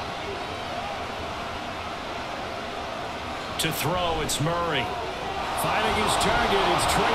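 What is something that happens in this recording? A large stadium crowd roars steadily, swelling louder near the end.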